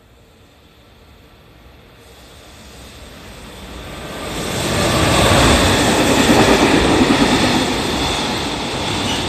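A freight train approaches and rushes past with a loud rumbling roar.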